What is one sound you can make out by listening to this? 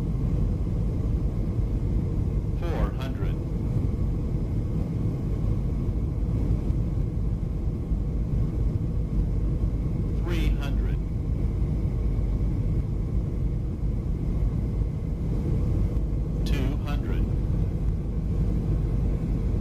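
A jet engine roars steadily in a cockpit.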